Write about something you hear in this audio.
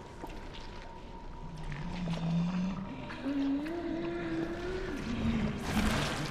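A large creature groans and growls low and close.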